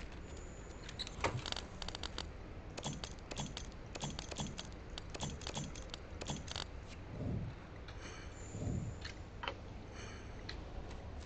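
Short menu clicks tick in quick succession.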